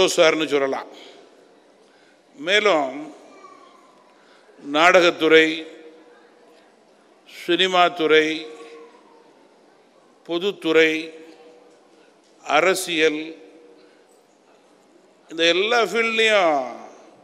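A middle-aged man speaks forcefully into a microphone in short bursts, with his voice ringing through a large hall.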